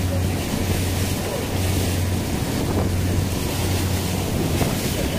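A boat engine hums low and steady.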